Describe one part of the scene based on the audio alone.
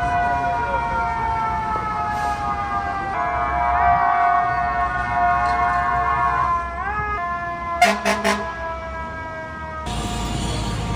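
A fire truck siren wails loudly nearby, its pitch sliding slowly.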